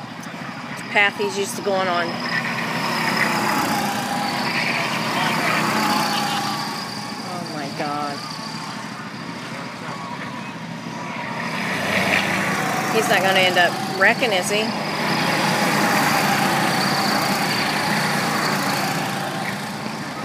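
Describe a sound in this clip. Go-kart engines buzz and whine as the karts race past, rising and fading.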